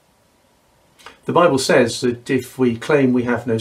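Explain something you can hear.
An older man speaks calmly and close up.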